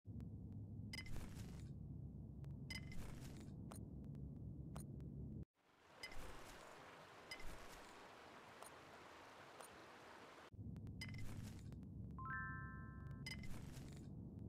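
Short bright chimes ring out as items are picked up.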